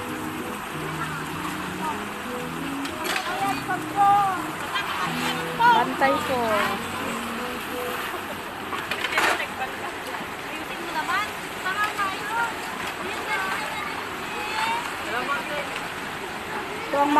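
A small waterfall splashes steadily close by.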